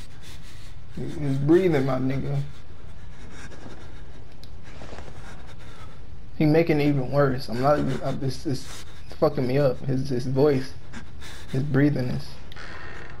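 A young man talks with animation into a nearby microphone, in short bursts.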